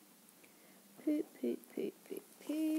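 A young girl speaks close by.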